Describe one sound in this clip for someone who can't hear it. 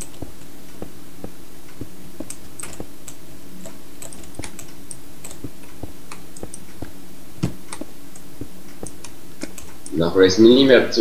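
Blocks crack and crumble with short clicks as they are dug out.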